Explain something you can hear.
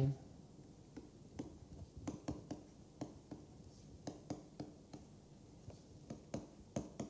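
A pen taps and scratches on a writing tablet.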